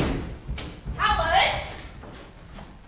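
A woman shouts excitedly from a distance.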